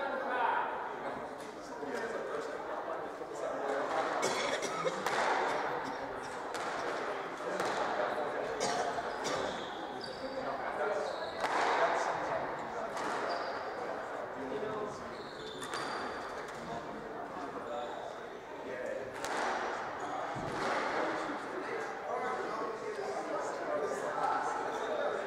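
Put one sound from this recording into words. A squash ball smacks against the walls with sharp echoing thwacks.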